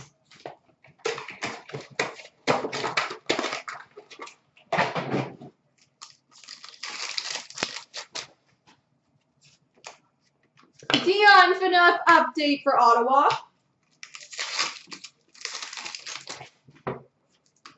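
Cardboard packs crinkle and tear as hands open them.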